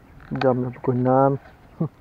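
A fishing reel clicks as its line is wound.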